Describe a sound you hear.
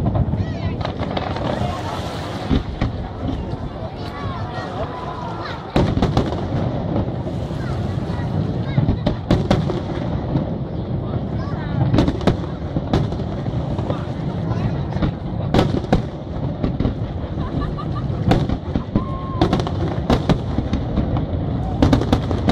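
Fireworks crackle and fizz after bursting.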